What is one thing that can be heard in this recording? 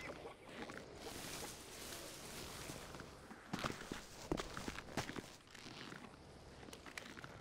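Leaves and branches rustle as a man pushes through bushes.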